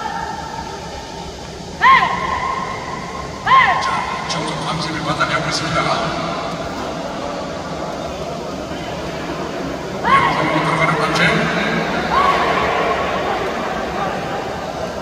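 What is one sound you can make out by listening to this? Bulls' horns clack and knock together as the bulls push head to head.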